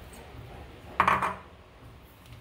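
A plastic bowl thumps down onto a counter.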